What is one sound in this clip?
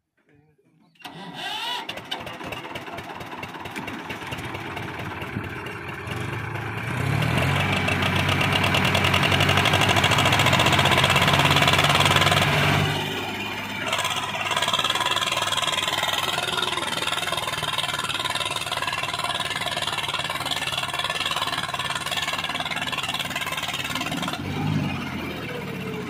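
A tractor engine chugs and roars close by.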